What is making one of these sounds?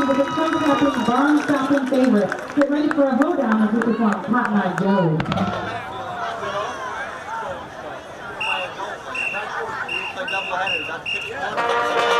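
A marching band plays loudly outdoors with brass and drums.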